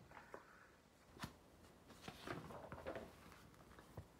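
Book pages rustle as a woman turns them.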